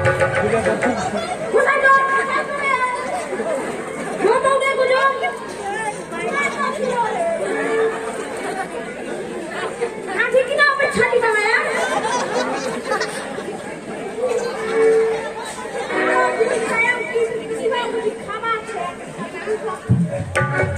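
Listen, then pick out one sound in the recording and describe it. Two young men talk loudly and with animation through a microphone, heard over loudspeakers.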